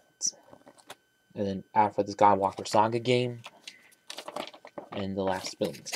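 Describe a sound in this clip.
Paper pages flap and rustle as a booklet is flipped through.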